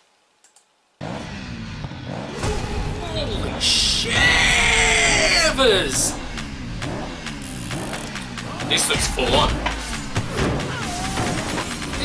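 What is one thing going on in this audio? Loud dramatic music with sound effects plays.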